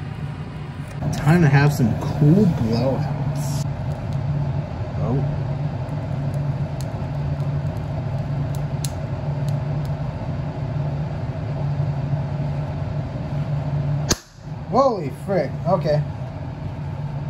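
A small electric fan motor hums steadily.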